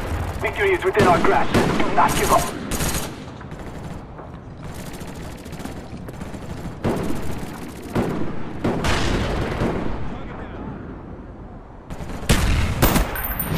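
Rifle shots ring out in short, sharp bursts.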